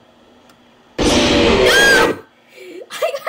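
An animatronic creature lets out a loud, harsh screech.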